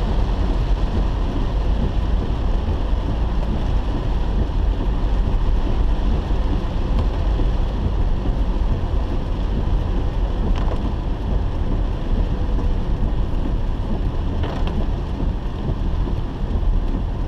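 A car's wipers thump across the windscreen.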